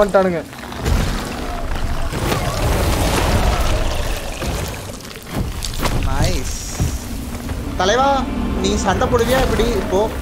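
Explosions and magic blasts boom and crackle.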